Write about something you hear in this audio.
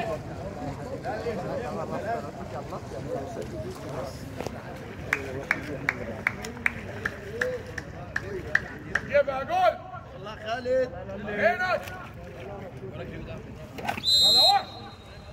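Water splashes as swimmers move through a pool.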